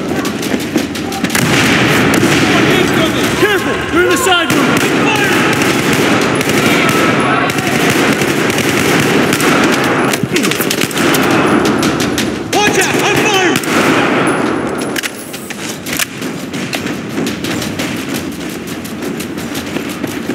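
Rifle shots crack repeatedly.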